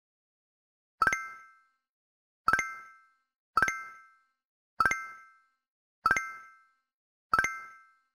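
Short game pings sound one after another at a steady pace.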